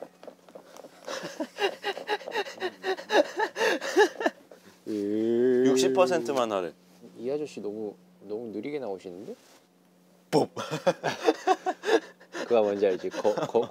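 Young men talk and laugh with animation close by.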